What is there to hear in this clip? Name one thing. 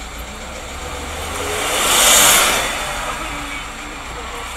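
A bus roars past close by, swelling loud and then fading.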